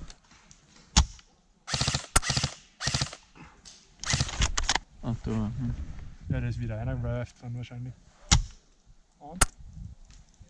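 A rifle fires single sharp snaps.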